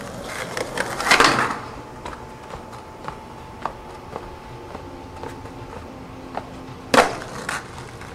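A skateboard clacks and slams onto concrete.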